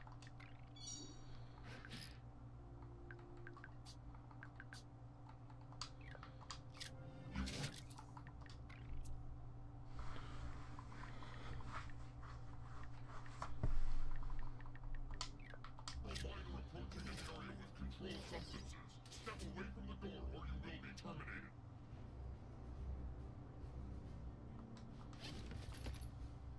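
A young man talks casually and close into a microphone.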